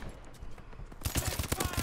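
A rifle fires in a rapid burst.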